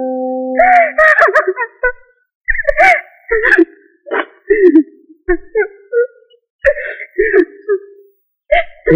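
A woman speaks in a tearful, upset voice close by.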